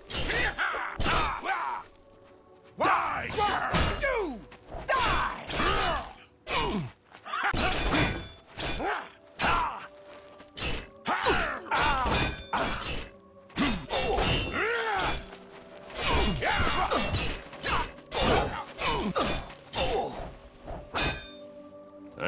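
Swords clang and strike in a fight.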